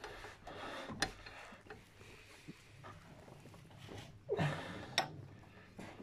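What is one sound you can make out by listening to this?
A metal tool clinks against engine parts.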